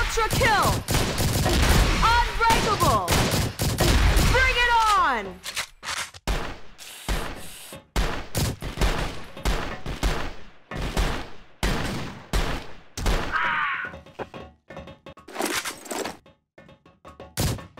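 A rifle fires in short, rapid bursts of gunshots.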